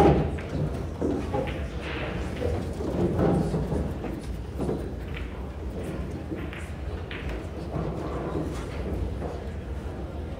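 A small indoor crowd murmurs quietly in the background.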